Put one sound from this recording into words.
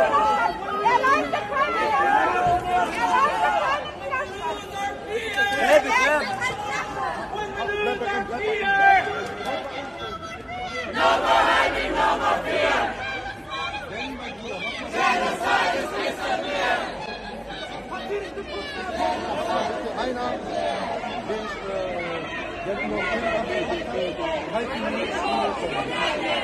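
A crowd of men and women shouts and chants outdoors.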